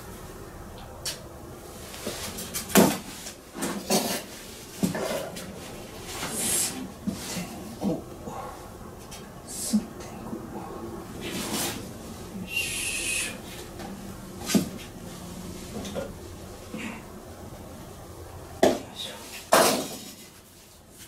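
Small items clatter and knock as hands work close by.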